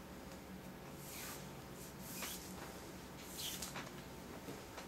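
A cord swishes as it is pulled taut.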